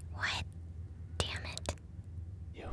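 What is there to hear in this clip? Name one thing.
A young woman laughs softly and close by.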